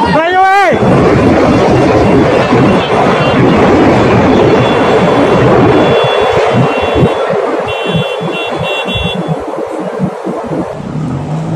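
A huge metal crane crashes down with a long, loud rumbling roar.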